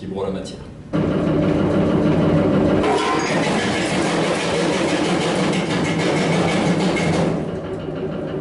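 A machine runs with a loud, steady whirring rumble.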